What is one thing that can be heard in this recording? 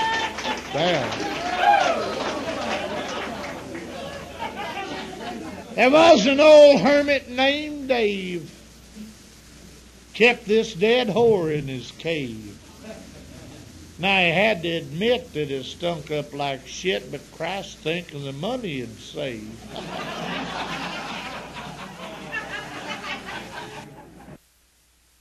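A song with a singer and a backing band plays from an old tape.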